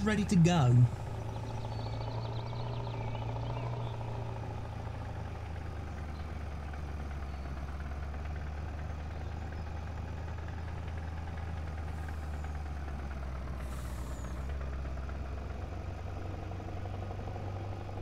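A truck engine hums steadily at a low pitch as it drives along.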